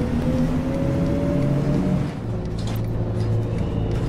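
A bus engine drops in pitch as the gears shift.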